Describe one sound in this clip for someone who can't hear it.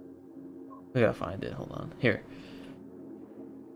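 Soft electronic menu sounds click and chime as selections are made.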